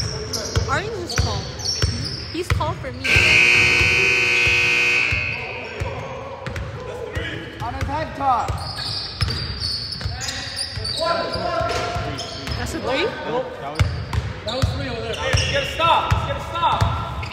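A basketball bounces with hollow thuds.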